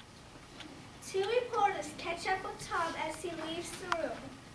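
A young girl reads out lines in a large echoing room.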